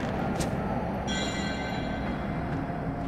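A bright magical chime sparkles briefly.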